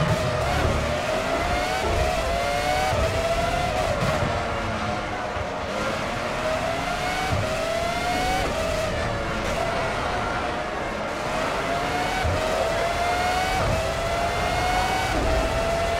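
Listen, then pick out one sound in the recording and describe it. A racing car engine screams at high revs, rising through the gears and dropping as it slows for corners.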